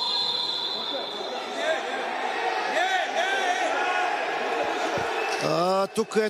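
Men shout and cheer in an echoing hall.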